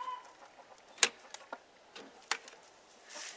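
A metal latch clicks and rattles.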